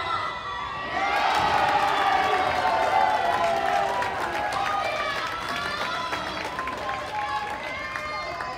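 A crowd cheers and claps loudly in an echoing hall.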